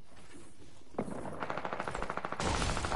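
A pickaxe strikes a wooden shelf.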